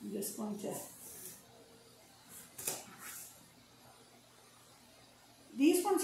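An older woman speaks briefly and calmly close by.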